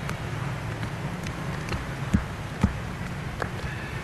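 Footsteps clatter on stairs.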